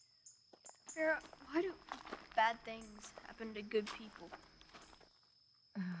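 A child talks quietly outdoors.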